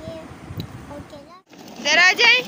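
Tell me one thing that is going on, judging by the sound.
A young girl speaks close up.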